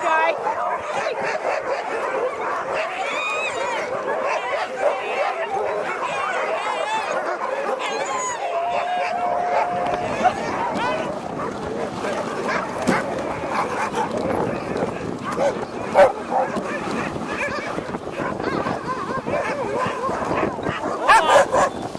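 Many dogs bark and howl excitedly close by.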